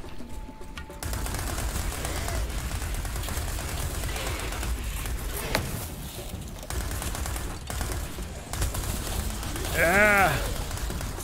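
Video game guns fire rapid shots.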